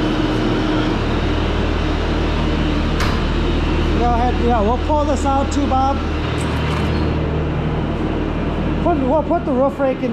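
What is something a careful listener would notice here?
A loader's diesel engine idles with a low, steady rumble.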